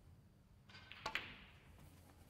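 A cue strikes a snooker ball with a sharp click.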